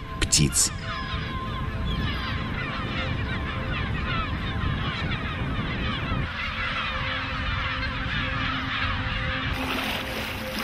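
Many gulls call and shriek.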